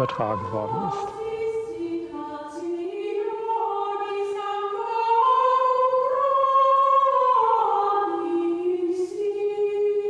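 Women sing a slow, sustained melody together.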